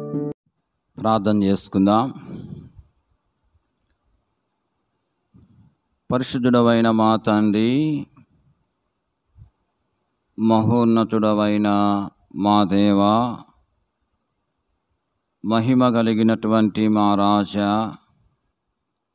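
A man speaks slowly and with feeling into a close microphone, with long pauses.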